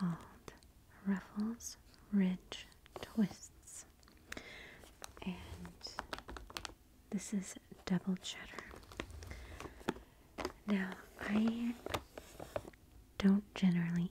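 Fingernails tap and scratch on a crinkly plastic bag.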